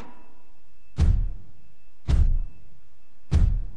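A heavy electrical switch clunks several times.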